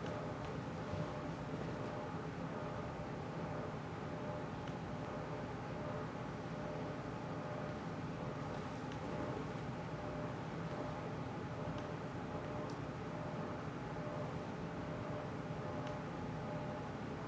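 A man speaks calmly through a microphone in a large room.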